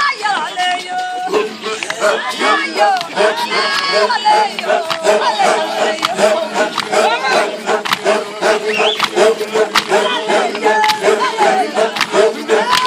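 A group of men and women chant and sing together close by.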